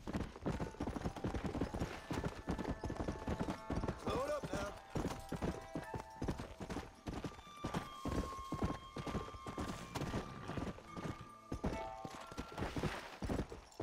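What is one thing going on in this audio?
Horse hooves thud rapidly on grass at a gallop.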